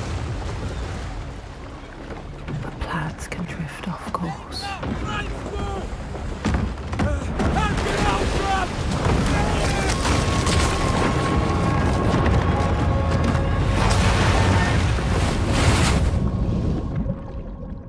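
A storm roars and waves crash against a ship.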